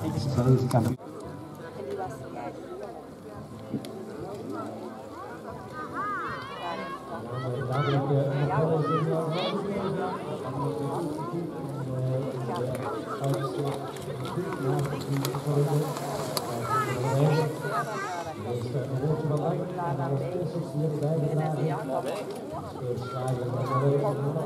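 Adult men and women chat nearby outdoors.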